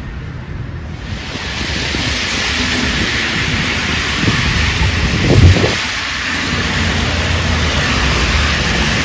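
Car tyres hiss over a wet, slushy road.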